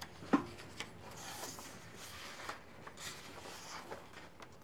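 A paper page rustles as it is turned.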